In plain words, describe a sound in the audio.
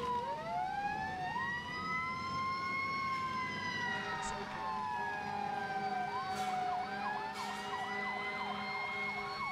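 Several sirens wail at once, rising and falling in pitch.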